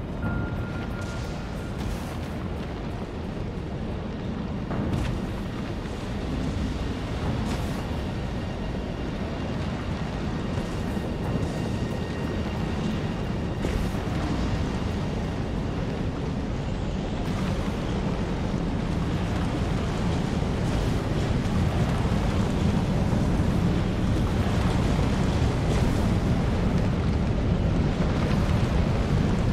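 A strong wind roars steadily, growing louder over time.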